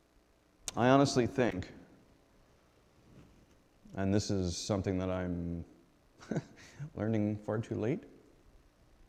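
A middle-aged man speaks calmly into a microphone, in pauses.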